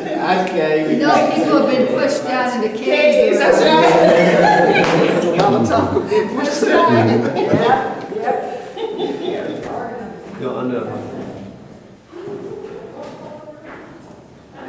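A group of people chatter and talk over one another.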